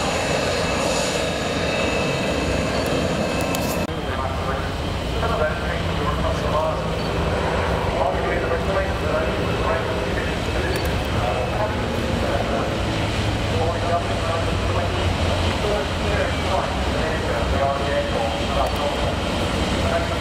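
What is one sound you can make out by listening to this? Jet engines rumble loudly and steadily.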